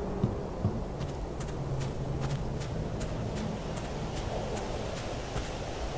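Distant gunshots crack in quick bursts.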